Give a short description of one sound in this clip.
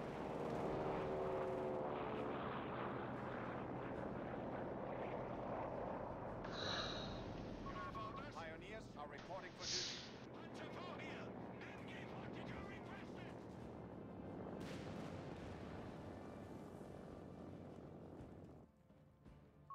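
Tank engines rumble steadily.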